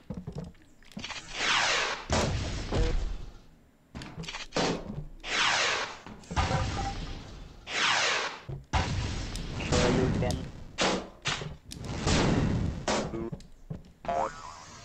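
Cartoon explosions boom and rumble again and again.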